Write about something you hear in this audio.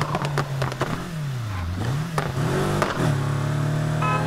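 A car engine revs down and back up during a gear change.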